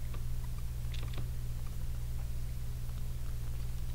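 Crunchy game chewing sounds play briefly.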